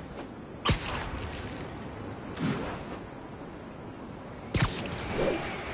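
Web lines shoot out with sharp whooshing snaps.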